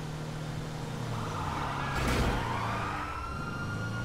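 A car whooshes past.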